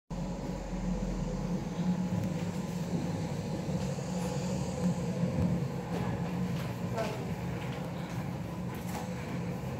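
Children murmur and shuffle quietly nearby.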